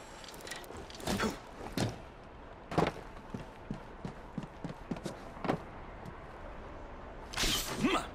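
Footsteps patter across a metal roof.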